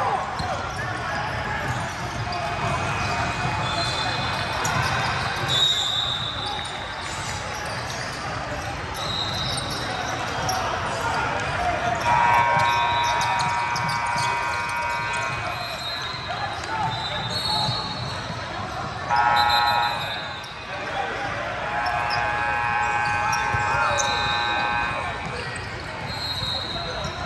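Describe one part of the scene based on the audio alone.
Many voices chatter and call out, echoing through a large hall.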